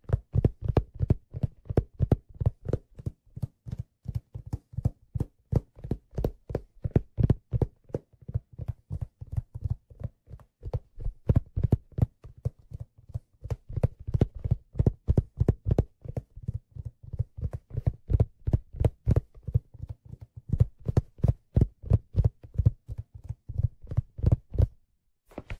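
Fingertips tap rapidly on a hollow hat close to a microphone, making soft dull thumps.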